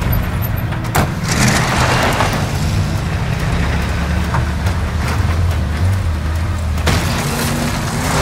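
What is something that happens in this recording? A large truck's engine rumbles.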